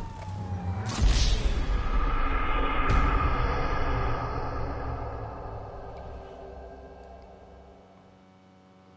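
A deep booming musical sting swells and then slowly fades away.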